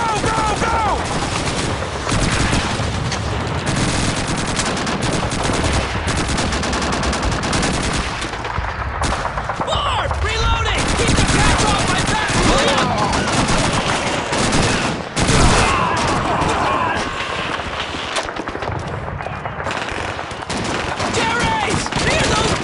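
Gunfire crackles and bangs throughout.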